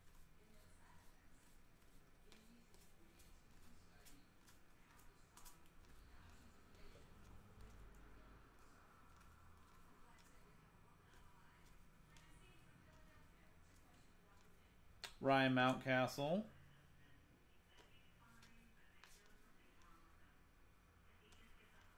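Trading cards click and rustle as they are flipped through by hand.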